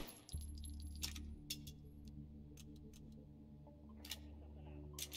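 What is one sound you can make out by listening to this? A pistol's parts click and clack as the weapon is handled.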